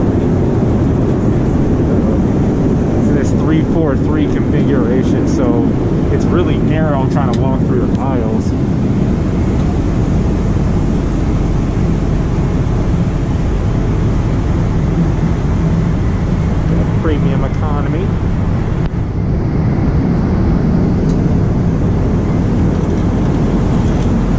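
A plane's engines roar steadily throughout the cabin in flight.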